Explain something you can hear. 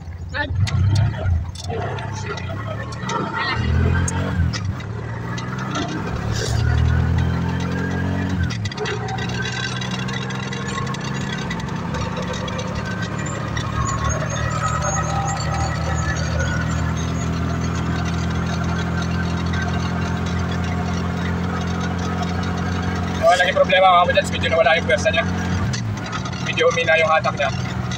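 An engine hums steadily as a small open vehicle drives along.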